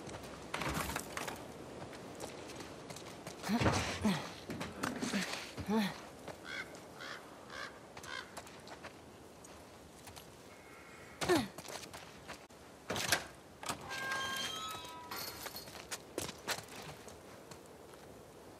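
Footsteps tread on damp ground.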